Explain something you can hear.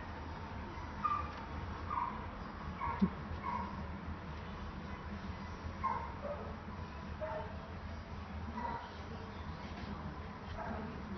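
A kitten mews softly and repeatedly, close by.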